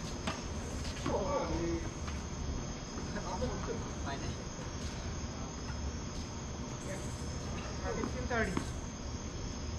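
A man calls out from a distance outdoors.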